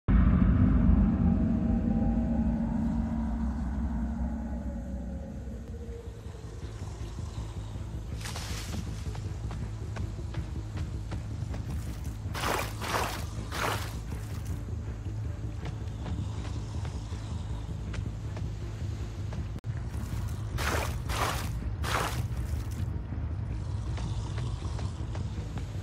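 Footsteps rustle through tall dry grass.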